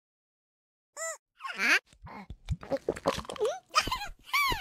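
A cartoon cat gulps a drink.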